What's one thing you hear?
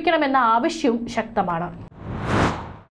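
A woman speaks clearly into a microphone, like a news presenter.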